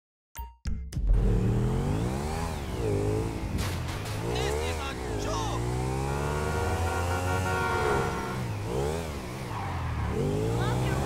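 A motorcycle engine revs up and down, rising and falling in pitch.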